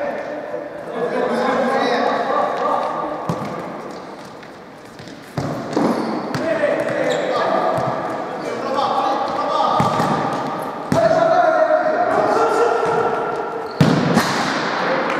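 Men shout to each other across a large echoing hall.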